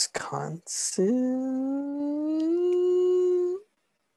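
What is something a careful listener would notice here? A young man sings a long rising note over an online call.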